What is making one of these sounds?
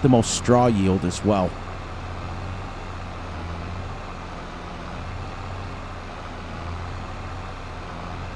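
A tractor engine hums steadily at low pitch.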